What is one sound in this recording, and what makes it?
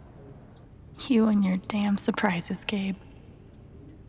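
A young woman speaks quietly and wearily.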